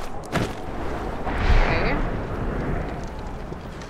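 Wind rushes past during a glide through the air.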